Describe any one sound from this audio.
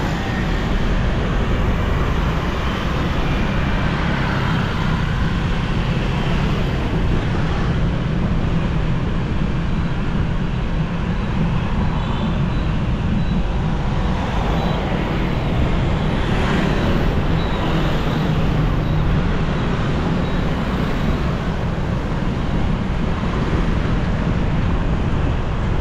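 Other motorbikes buzz past in busy traffic.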